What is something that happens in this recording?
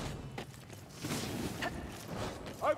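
Fire magic roars and crackles in bursts.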